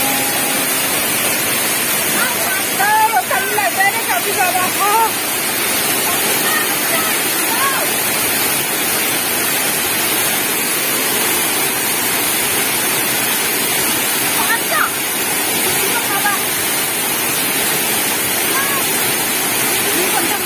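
A waterfall rushes and splashes steadily, close by.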